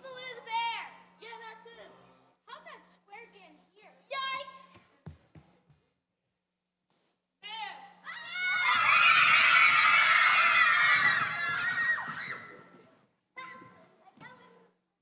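Children speak in turn through microphones in a large echoing hall.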